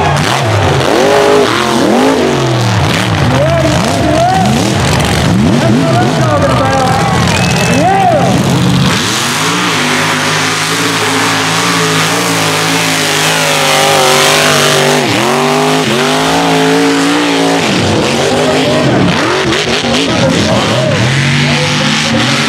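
Truck engines roar and rev loudly outdoors.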